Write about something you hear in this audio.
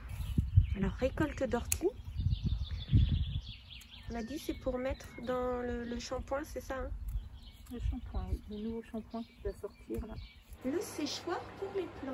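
Scissors snip through plant stems close by.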